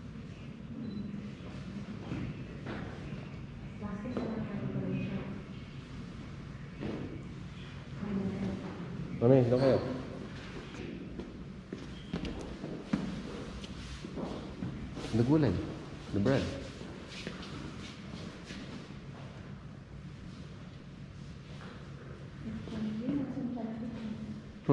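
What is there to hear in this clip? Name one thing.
Footsteps walk across a wooden floor.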